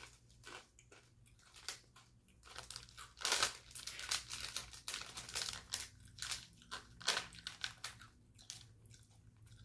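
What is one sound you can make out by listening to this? A plastic wrapper crinkles and rustles close by.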